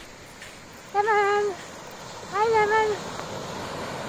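A dog barks twice.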